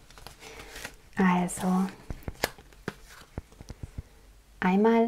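A plastic sleeve crinkles and rustles as it is handled.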